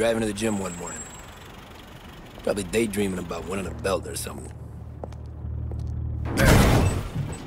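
A car engine idles low.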